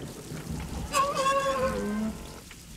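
A small robot warbles in high electronic chirps.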